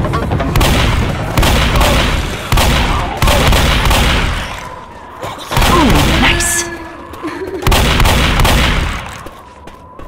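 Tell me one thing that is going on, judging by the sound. Shotgun blasts boom loudly, one after another.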